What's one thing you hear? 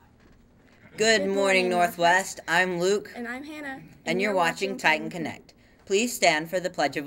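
A teenage boy speaks into a microphone.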